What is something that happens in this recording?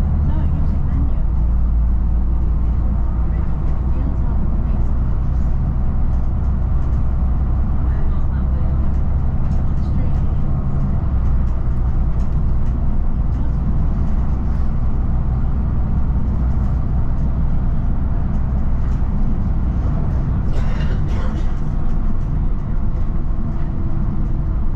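A large vehicle's engine drones steadily as it drives along a road.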